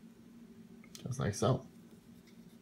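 A small plastic stand knocks and rubs as it is turned by hand.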